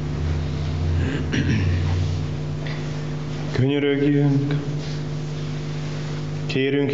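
A middle-aged man speaks calmly through a microphone in an echoing space.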